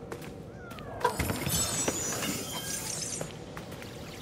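A wooden chest creaks open with a shimmering magical chime.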